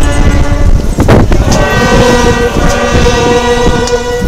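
A crowd of men and women sing together outdoors.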